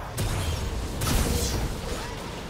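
A fiery blast whooshes and roars.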